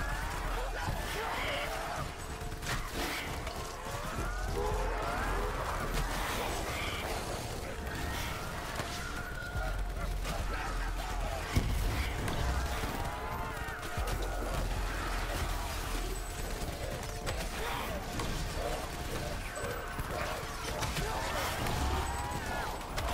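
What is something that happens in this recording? Zombies groan and screech.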